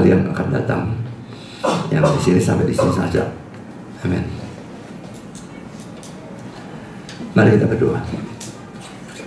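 A middle-aged man speaks calmly through a microphone in a hall that echoes a little.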